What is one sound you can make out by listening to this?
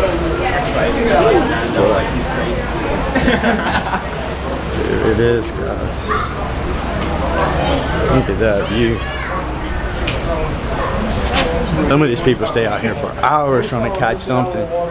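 Several men and women talk and chatter nearby, outdoors.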